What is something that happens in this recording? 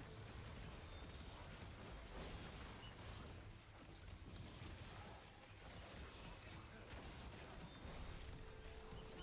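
Magic blasts and weapon hits clash and crackle in a fast game battle.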